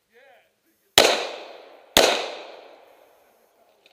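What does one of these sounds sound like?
A pistol fires two loud shots that echo outdoors.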